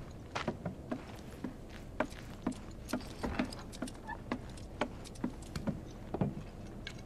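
Boots thud in steady footsteps on a wooden floor.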